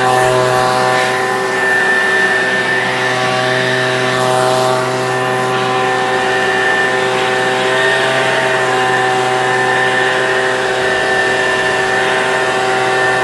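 A leaf blower motor whines steadily at close range.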